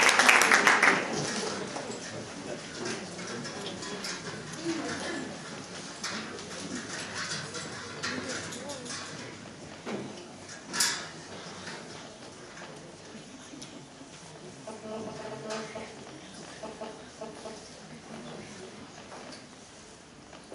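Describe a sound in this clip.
An audience murmurs and shuffles quietly in a large hall.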